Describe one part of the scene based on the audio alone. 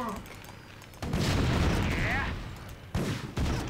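Small explosions and gunfire burst out in short rushes.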